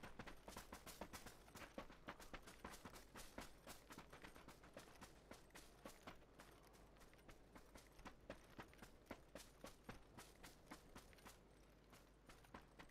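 Footsteps thud quickly on grass in a steady running rhythm.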